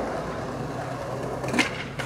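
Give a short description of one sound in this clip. A skateboard rolls and clacks on concrete.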